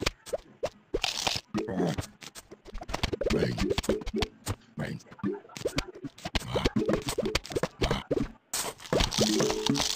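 Small plants fire with quick popping sounds.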